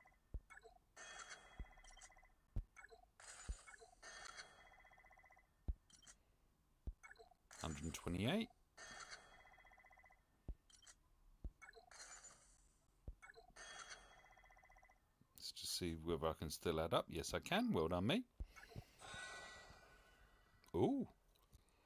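Soft game menu clicks tap at intervals.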